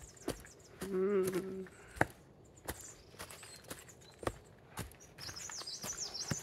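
Dry leaves crunch underfoot.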